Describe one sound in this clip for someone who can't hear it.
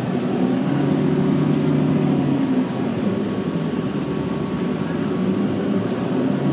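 A bus engine hums steadily from inside the bus as it drives along.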